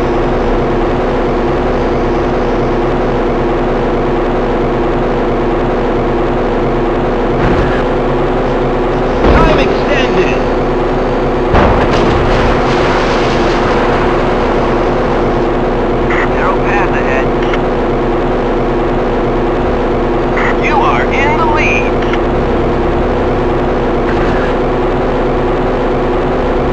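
A video game speedboat engine drones.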